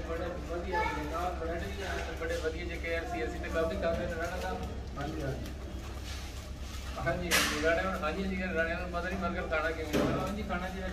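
Paper food wrapping rustles and crinkles.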